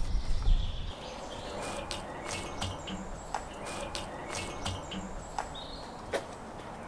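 Onions sizzle and crackle in a hot pan.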